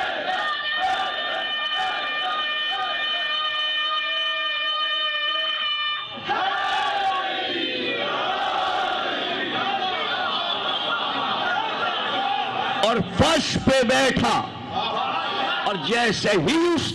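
A large crowd of men chants together loudly.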